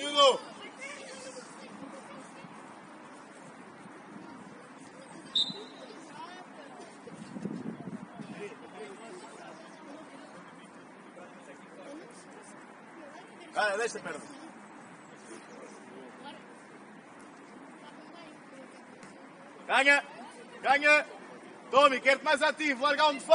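Young players shout calls to each other across an open outdoor pitch.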